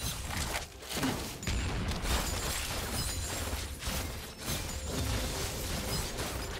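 Game spells and attacks crackle and whoosh in a fast fight.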